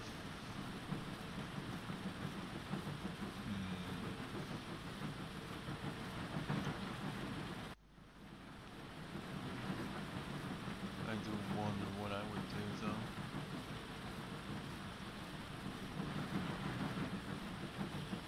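Factory machines hum and clatter steadily.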